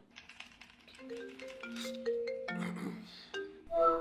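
A ringtone chimes in short melodic notes.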